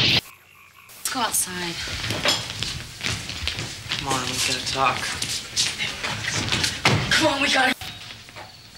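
Young women laugh and chatter with animation.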